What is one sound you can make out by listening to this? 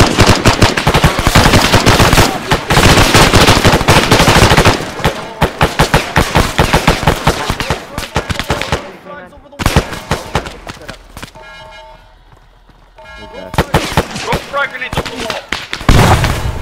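Rapid gunfire crackles loudly and repeatedly.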